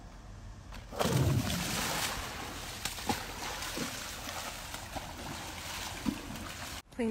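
Water splashes and sloshes around wading legs.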